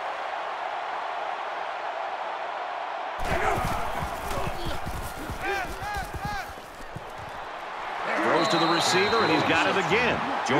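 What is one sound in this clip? A crowd roars steadily in a large stadium.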